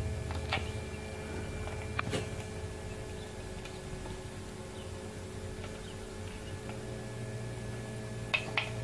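An incubator fan hums steadily.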